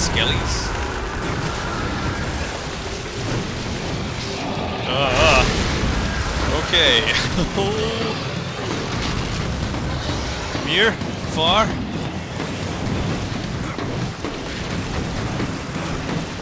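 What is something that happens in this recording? Blades slash and clang against bony foes.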